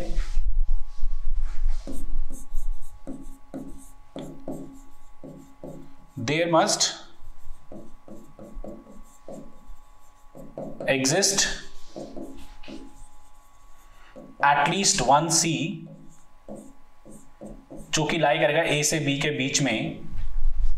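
A marker squeaks and taps as it writes on a board.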